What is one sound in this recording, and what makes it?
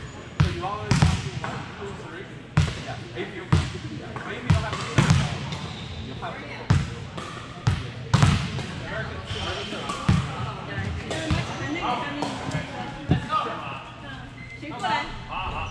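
A volleyball thuds sharply off hands and arms in a large echoing hall.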